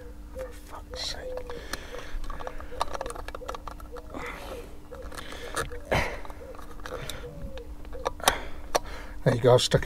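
Switches click on a car's dashboard.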